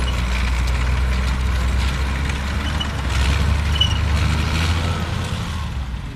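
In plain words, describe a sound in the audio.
A tracked vehicle's engine growls as it crawls over rough ground.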